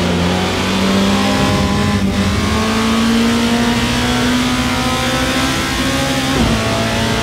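A racing car engine roars steadily and climbs in pitch as it speeds up.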